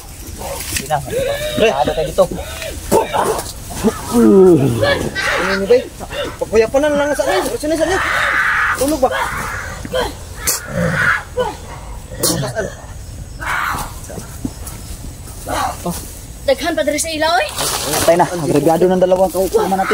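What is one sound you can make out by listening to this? Men talk loudly and excitedly close by.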